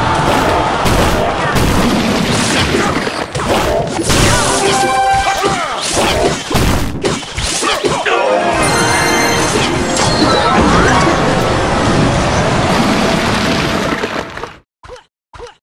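Game battle sounds clash and crackle with busy effects.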